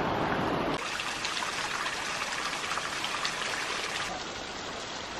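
Water trickles and splashes down a rock face.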